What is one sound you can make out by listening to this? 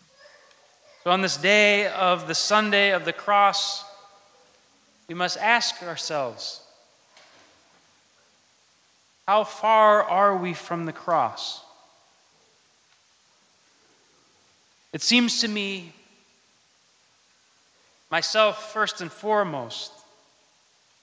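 A man chants through a microphone in an echoing hall, in long pitched phrases with pauses between them.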